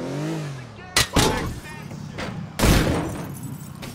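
A car crashes with heavy thuds.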